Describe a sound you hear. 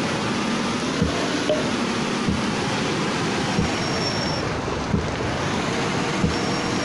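A truck engine winds down as the truck slows.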